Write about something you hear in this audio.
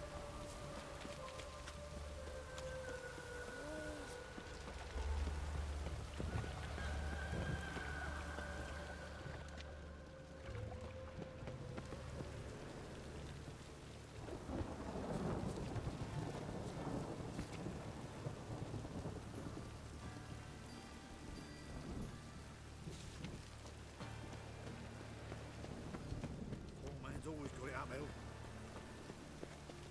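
Footsteps run over cobblestones.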